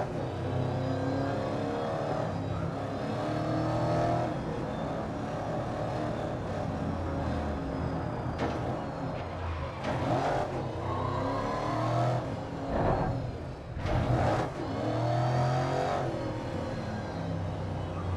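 A race car engine roars and revs up and down steadily.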